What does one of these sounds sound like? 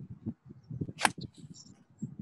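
A golf club strikes a ball outdoors.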